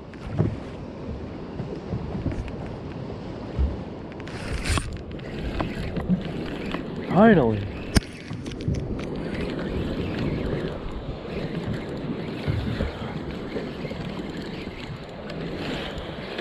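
A fishing reel clicks and whirs as a handle is cranked.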